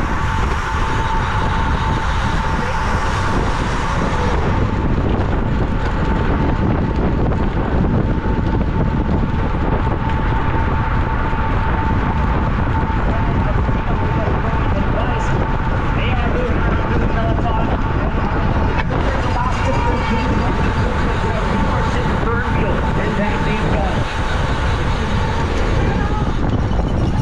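Strong wind roars past a moving rider, close up.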